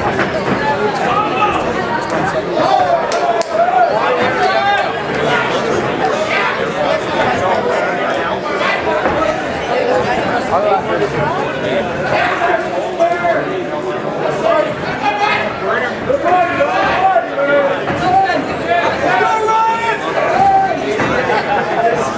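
A crowd shouts and cheers loudly throughout, in a large echoing hall.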